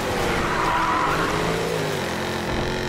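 Tyres screech as a car drifts through a turn.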